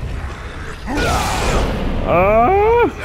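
Heavy blows land with crashing thuds and scattering debris.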